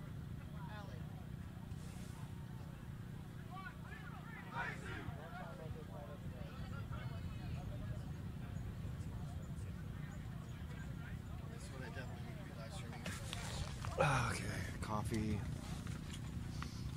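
Young men talk and call out in a huddle outdoors.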